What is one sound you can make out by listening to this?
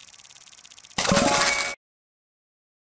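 Game coins jingle in a short, loud burst.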